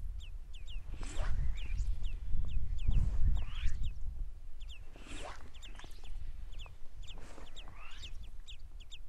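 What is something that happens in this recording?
A fishing line swishes through the air.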